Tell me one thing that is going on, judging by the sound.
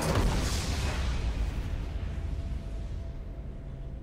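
A loud magical blast bursts and slowly fades.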